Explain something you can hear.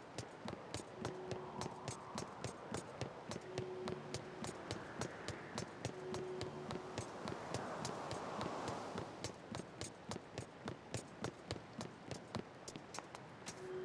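Hands and feet tap steadily on ladder rungs as a figure climbs.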